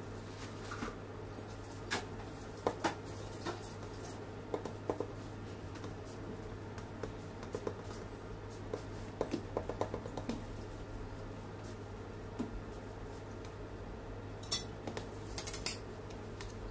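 Pieces of cake drop onto a board with soft thuds.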